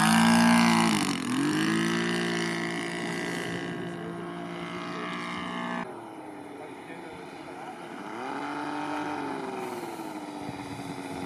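A model plane's engine whines overhead, rising and falling in pitch as it passes.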